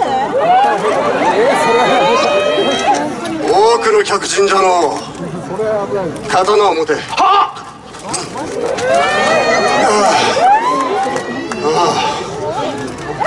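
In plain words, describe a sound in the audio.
A man speaks dramatically through loudspeakers.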